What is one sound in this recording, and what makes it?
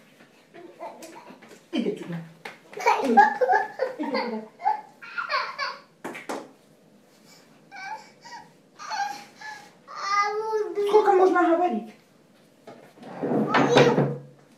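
A toddler babbles close by.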